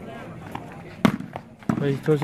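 A ball is struck with a thump.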